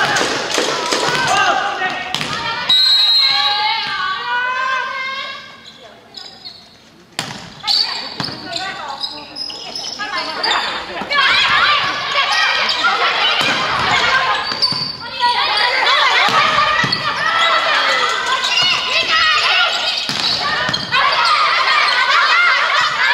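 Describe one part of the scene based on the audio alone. Young women players shout and call to each other on the court.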